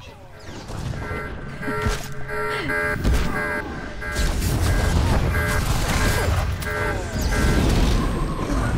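Weapons clash and zap in rapid bursts.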